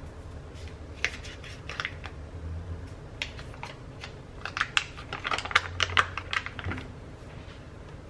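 Paper wrapping crinkles as it is unfolded.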